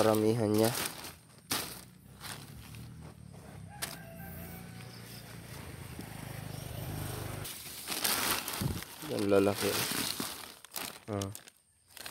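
A plastic sheet crinkles and rustles as it is pulled aside by hand.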